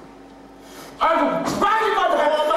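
A man roars and shouts loudly.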